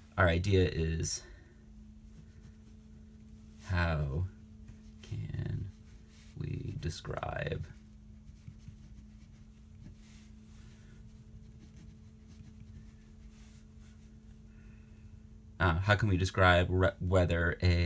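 A marker scratches and squeaks on paper.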